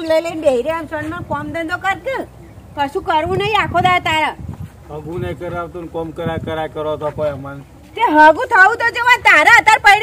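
A middle-aged woman talks with animation nearby.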